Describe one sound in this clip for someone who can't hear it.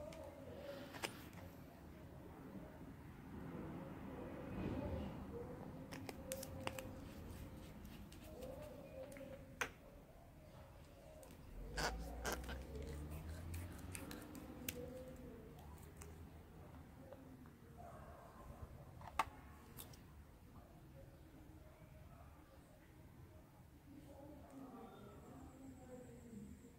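Small glass bottles and plastic caps click and tap as they are handled.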